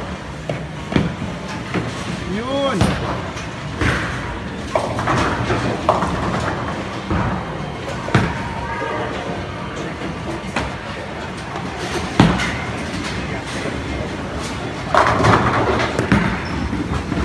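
Pins crash and clatter when struck.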